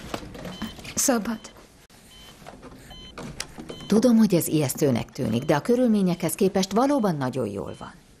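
A young woman speaks anxiously nearby.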